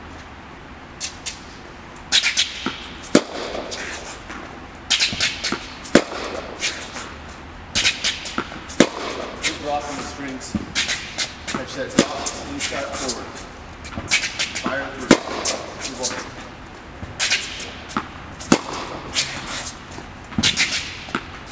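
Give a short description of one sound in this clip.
Sharp hits echo around a large indoor hall.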